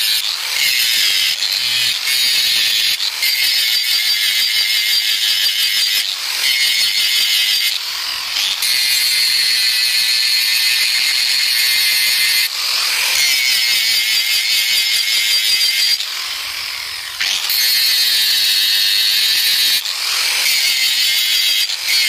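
An angle grinder whines loudly as it grinds metal in repeated bursts.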